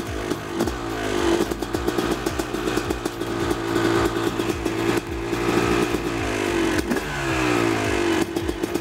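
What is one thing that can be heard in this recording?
A two-stroke dirt bike engine revs up and down loudly close by.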